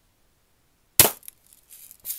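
A pellet smacks sharply into a paper target.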